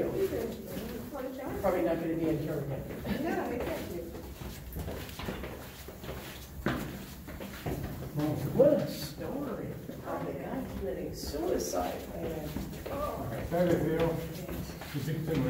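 Footsteps shuffle along a narrow stone passage.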